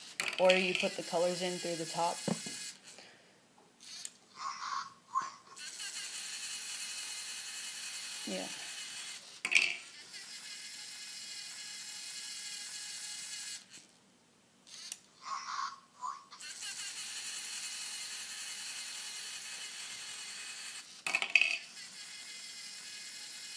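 A toy robot's motors whir steadily as it drives back and forth.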